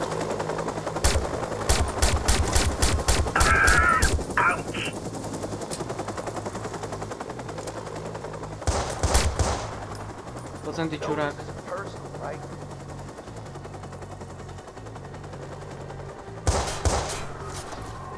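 A pistol fires shots in quick bursts.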